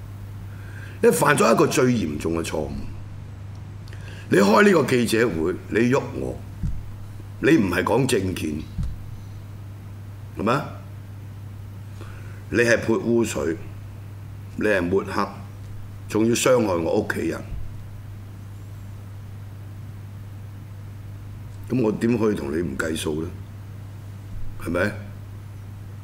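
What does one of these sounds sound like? A middle-aged man speaks into a microphone in bursts, with pauses between phrases.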